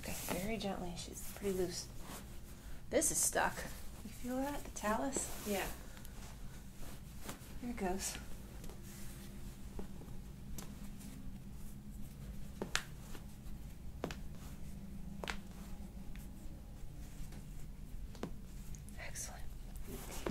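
Paper crinkles as a woman handles it.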